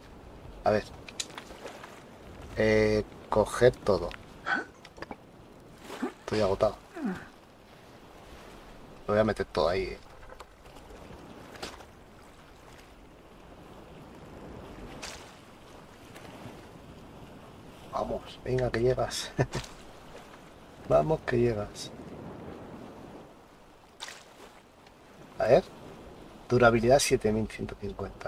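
Small waves lap gently against a sandy shore.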